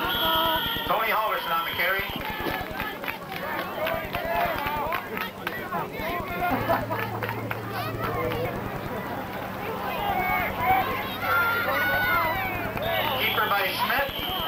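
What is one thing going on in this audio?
Teenage football players shout and call out to each other outdoors.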